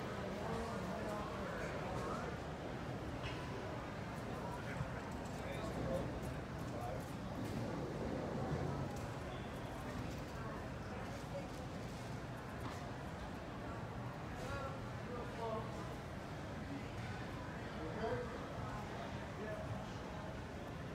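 Many voices murmur in a large echoing hall.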